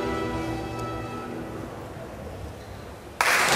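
An orchestra holds a final chord that rings and fades in an echoing hall.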